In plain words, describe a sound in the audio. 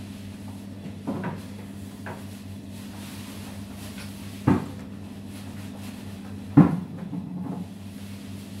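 Metal utensils clatter and knock against a steel counter.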